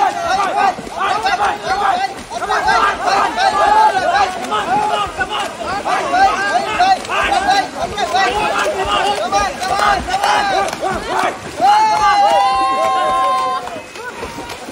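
A crowd of young men cheers and shouts with excitement nearby.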